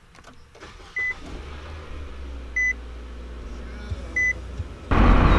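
A car chime beeps a few times.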